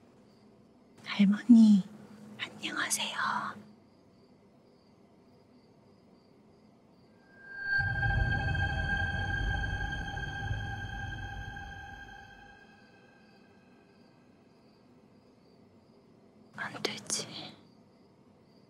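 A woman speaks softly and tenderly close by.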